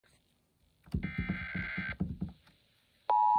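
A radio briefly plays a broadcast.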